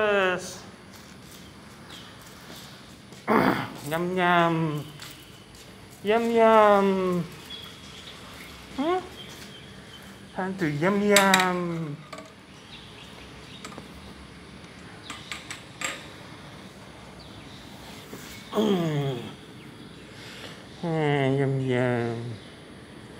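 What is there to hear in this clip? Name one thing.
A domestic cat meows in drawn-out calls.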